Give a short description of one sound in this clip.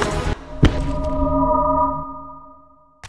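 A heavy creature lands with a thud that rings out.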